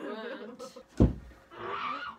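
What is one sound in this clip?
A thump sounds on a bed.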